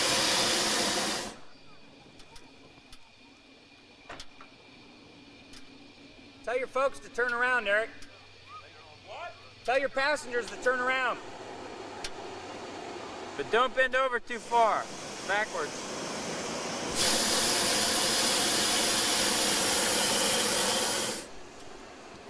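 A hot air balloon burner roars loudly in bursts.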